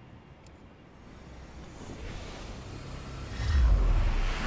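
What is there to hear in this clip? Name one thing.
A deep whoosh swells and rumbles.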